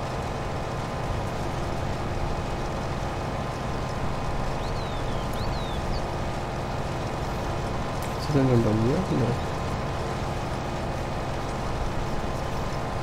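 A combine harvester's engine drones steadily.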